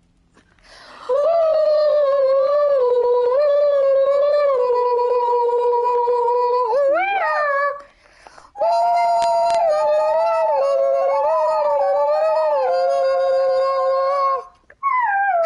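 A young woman sings long, drawn-out notes.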